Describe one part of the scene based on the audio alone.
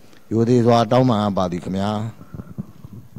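An elderly man speaks into a microphone, heard through a loudspeaker in an echoing room.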